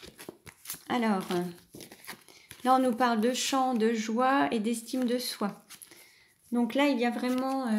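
Stiff cardboard discs clack softly as they are handled.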